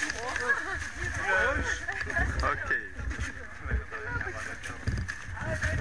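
Several men and women chatter in a group.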